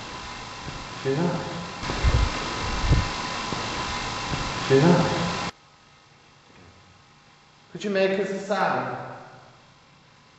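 A man speaks quietly outdoors at night, close by.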